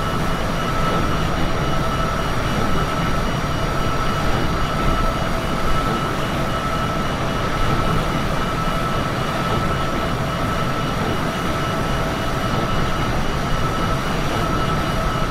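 Jet engines roar and whine steadily.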